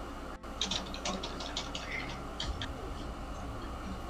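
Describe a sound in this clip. A short electronic hit sound plays in a video game.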